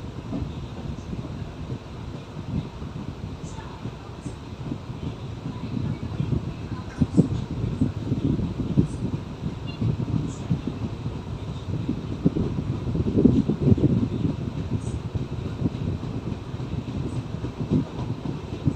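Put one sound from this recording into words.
Wind rushes past an open train door.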